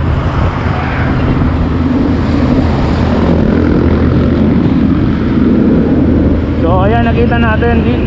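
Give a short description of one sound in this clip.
A heavy truck rumbles close by in passing.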